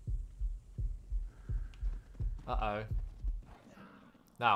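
Footsteps thud quickly on dry ground.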